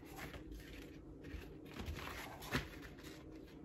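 A knife scrapes and cuts through leather.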